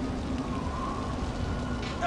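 Flames crackle.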